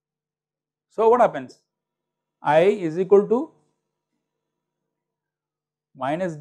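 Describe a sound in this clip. A middle-aged man speaks calmly into a close microphone, in short phrases.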